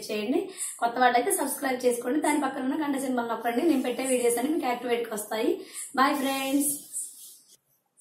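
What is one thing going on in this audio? A woman speaks with animation close to the microphone.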